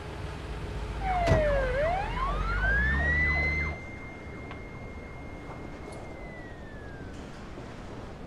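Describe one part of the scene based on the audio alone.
An ambulance siren wails, rising and then falling.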